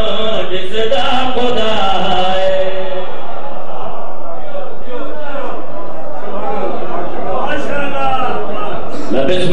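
Young men chant loudly together into a microphone through loudspeakers.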